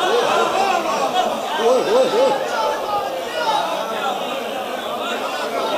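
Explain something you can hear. A crowd of men chants along and raises their voices.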